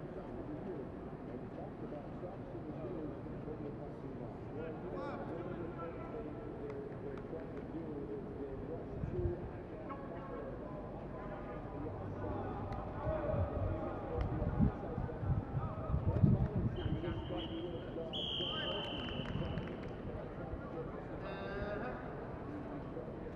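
Young men and women call out to each other at a distance in a large open stadium.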